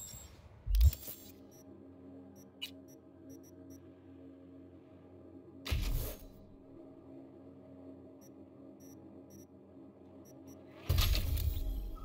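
A steady low electronic hum plays while a game menu is open.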